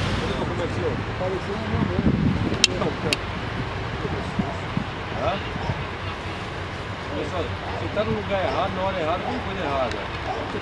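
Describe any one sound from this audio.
A man speaks sternly and loudly, close by.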